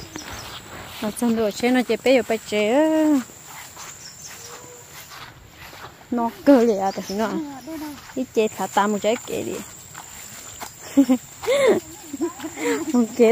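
A woman talks nearby with animation.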